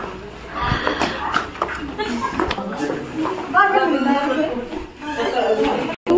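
Men and women talk excitedly over one another close by.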